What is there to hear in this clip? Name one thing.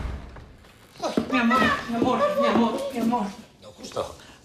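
A young child cries out excitedly close by.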